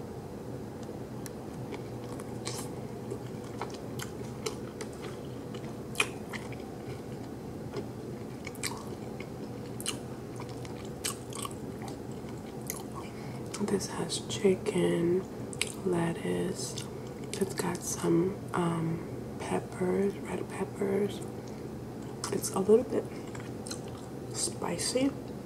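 A woman chews food with wet mouth sounds close to a microphone.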